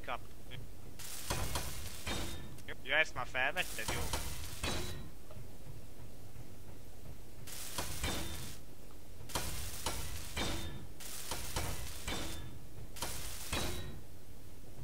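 A welding tool hisses and crackles in short bursts.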